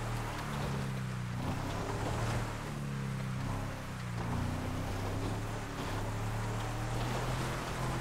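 An engine hums steadily, revving up and down.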